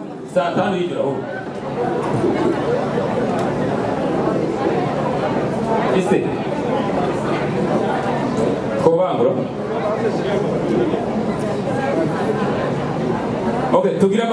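An older man sings into a microphone through loudspeakers in an echoing hall.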